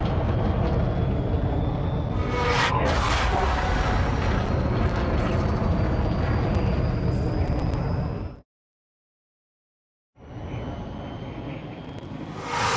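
A spaceship engine rumbles low and steady, cutting out briefly.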